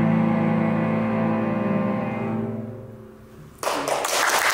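A string orchestra plays a held closing chord in a reverberant hall.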